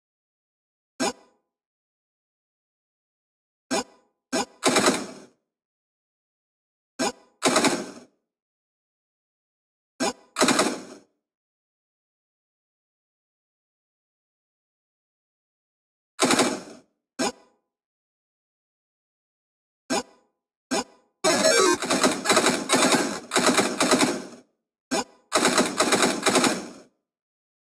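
Gunshots fire in quick, sharp bursts.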